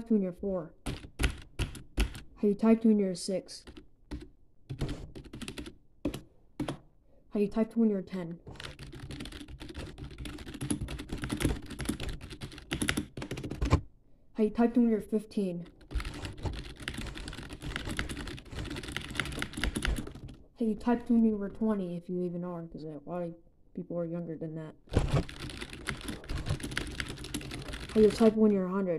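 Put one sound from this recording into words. Fingers tap rapidly on a clicky keyboard.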